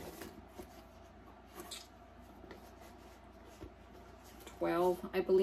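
A leather bag rustles and taps softly as hands handle it.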